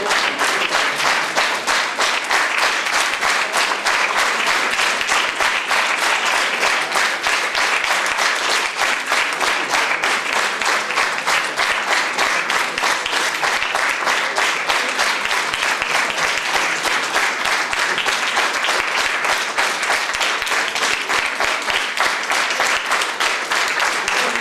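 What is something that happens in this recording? A large audience applauds steadily with loud, rapid clapping.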